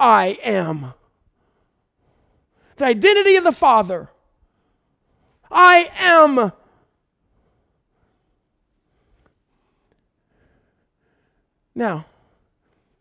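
A middle-aged man speaks with animation into a headset microphone, in short bursts with pauses.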